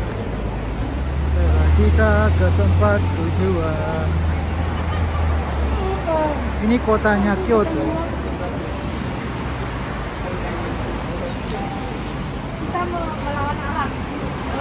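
Traffic hums along a city street.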